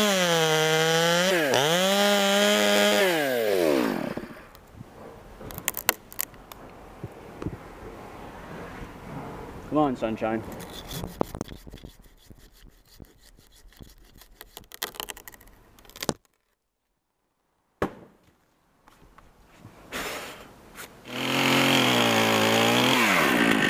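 A chainsaw cuts through a tree trunk.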